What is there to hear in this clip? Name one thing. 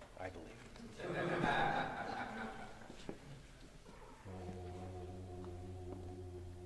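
A choir sings sustained chords in a large echoing hall.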